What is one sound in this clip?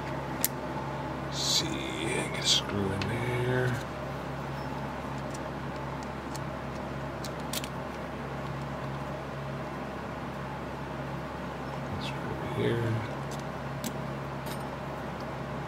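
Small metal parts click and tap as fingers handle them.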